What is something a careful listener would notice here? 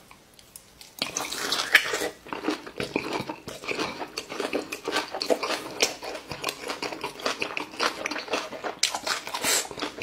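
A man chews food loudly and wetly close to a microphone.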